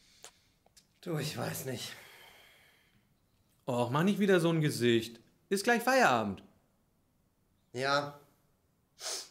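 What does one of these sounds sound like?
A man speaks calmly and haltingly into a microphone, close by.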